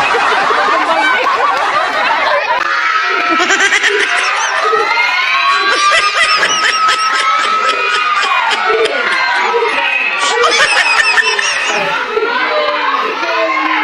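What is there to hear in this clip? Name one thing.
A woman laughs and cheers close by.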